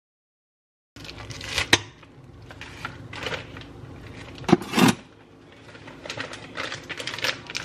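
Objects knock and clatter against a blender.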